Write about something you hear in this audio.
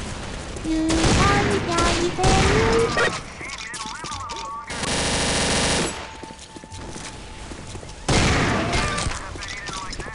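Guns fire in rapid bursts, close by.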